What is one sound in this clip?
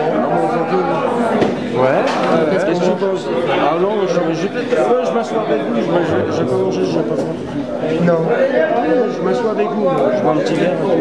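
A bass guitar plays a bass line.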